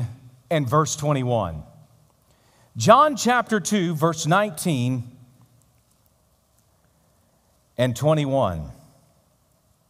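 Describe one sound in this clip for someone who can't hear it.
A man speaks with emphasis through a microphone, in bursts with long pauses, in a large echoing hall.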